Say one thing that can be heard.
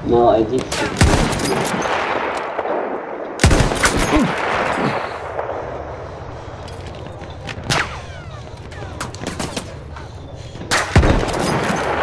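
A rifle fires loud sharp shots that echo away.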